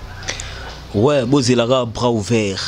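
A middle-aged man answers into a microphone.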